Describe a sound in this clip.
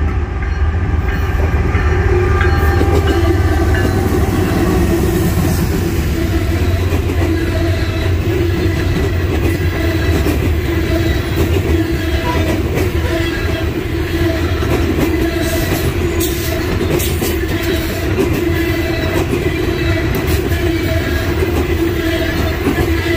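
A freight train rumbles past close by, its wheels clattering and squealing on the rails.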